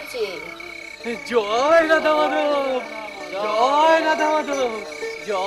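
A young man wails and sobs loudly.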